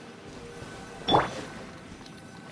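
A bright magical whoosh rings out.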